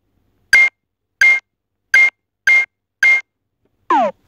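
Short electronic beeps sound in quick succession.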